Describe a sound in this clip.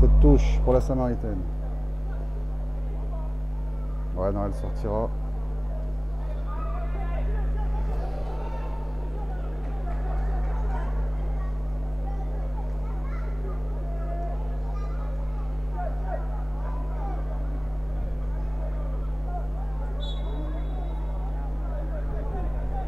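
Men shout and call out in the distance outdoors.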